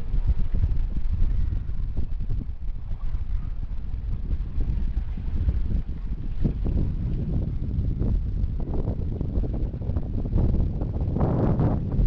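Water splashes and rushes along a boat's hull.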